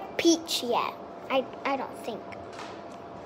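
A young girl speaks close to the microphone with animation.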